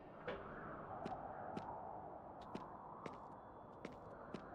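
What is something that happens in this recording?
Footsteps thud on wooden planks at a steady pace.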